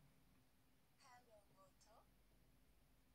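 A phone plays a short startup chime.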